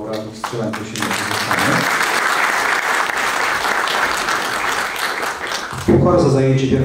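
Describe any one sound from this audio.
A small crowd applauds in a hall.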